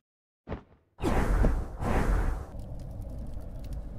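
A deep whoosh rushes past.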